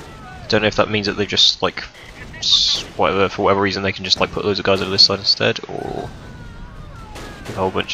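Shells explode with heavy booms.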